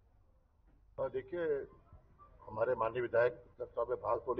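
An older man speaks firmly into microphones close by.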